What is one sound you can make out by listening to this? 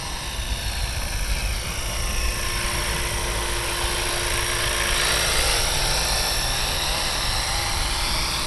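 A model helicopter's engine whines steadily as its rotor whirs.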